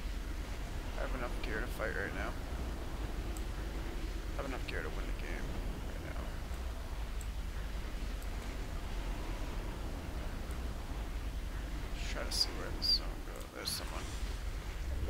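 A young man talks with animation into a close headset microphone.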